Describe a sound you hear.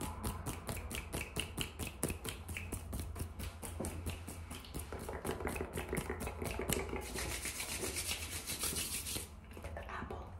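Fingertips tap and scratch close to a microphone.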